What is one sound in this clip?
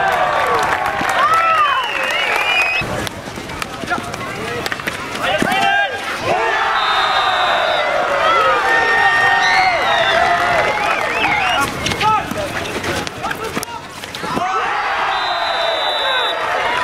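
A crowd cheers and chatters outdoors.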